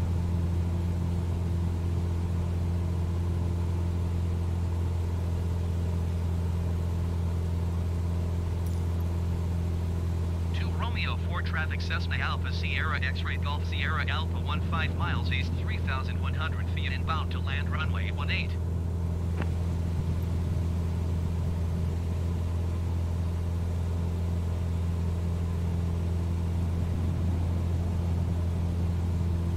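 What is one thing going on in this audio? A small propeller plane's engine drones steadily throughout.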